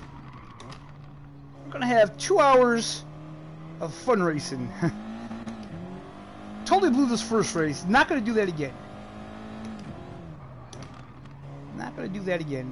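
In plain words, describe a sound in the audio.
A racing car engine roars, revving up and down through gear changes.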